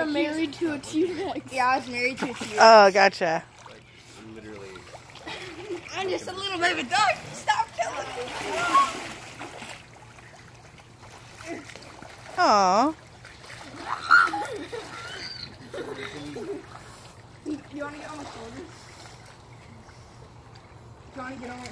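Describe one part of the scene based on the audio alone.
Water splashes as children move in a pool.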